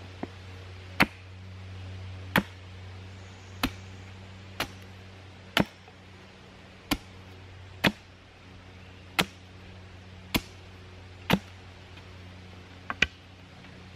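A mallet drives a stake into the ground with loud, evenly spaced blows.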